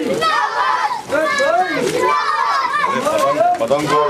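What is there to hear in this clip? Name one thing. A man shouts slogans through a microphone.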